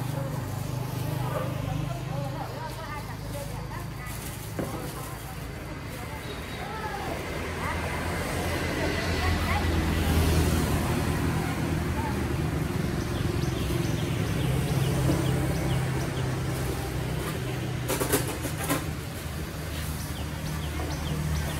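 Motorbike engines hum as they pass along a nearby street.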